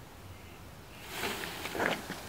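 Leafy branches rustle and shake.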